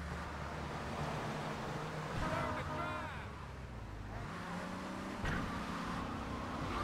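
A car engine roars steadily as a car speeds along.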